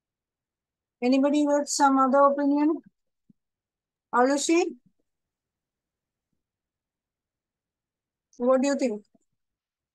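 A woman speaks calmly and clearly over a microphone, in short phrases with pauses.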